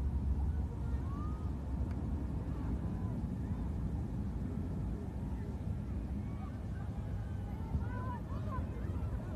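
Young women shout faintly from across an open field.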